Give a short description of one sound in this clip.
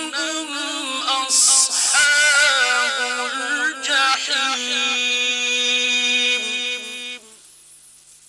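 A man chants in a long, wavering melodic voice through a microphone, with echo.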